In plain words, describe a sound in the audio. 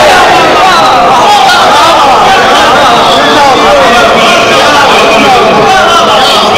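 A man chants loudly into a microphone, heard through loudspeakers in an echoing hall.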